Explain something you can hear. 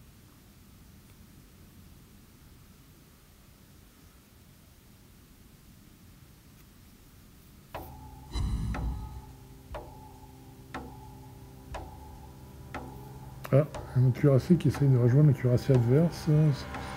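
A ship's engine hums steadily as the ship ploughs through waves.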